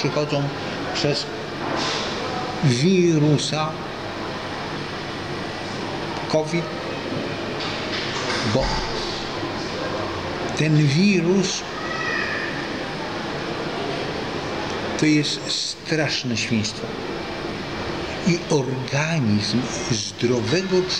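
An elderly man speaks close by, calmly and with some animation.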